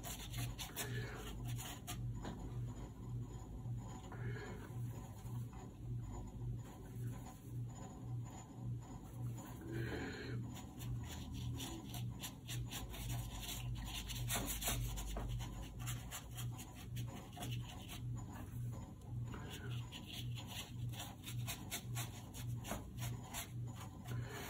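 A brush dabs and scratches softly on paper.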